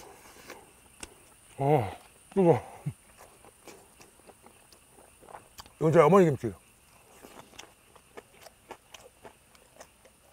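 A man chews food wetly close to a microphone.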